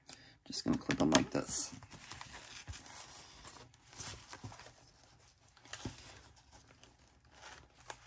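Paper pages rustle and flap.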